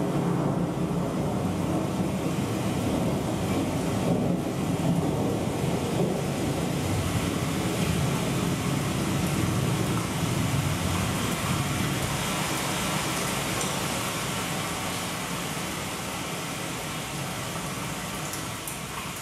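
Loud electronic music with a deep, droning rumble fills a large echoing room.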